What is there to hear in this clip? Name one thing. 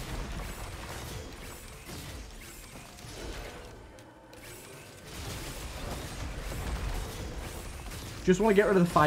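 Weapons fire in rapid bursts with a low rumbling roar.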